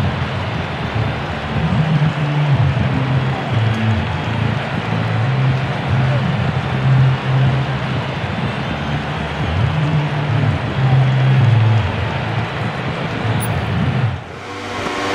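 A motorcycle engine idles and revs loudly up close.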